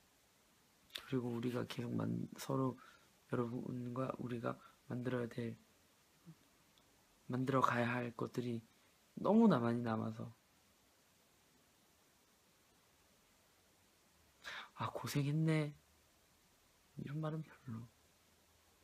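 A young man speaks softly and thoughtfully, close to a phone microphone, with long pauses.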